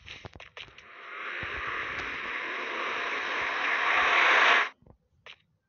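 A magic portal hums with a rising, whooshing roar.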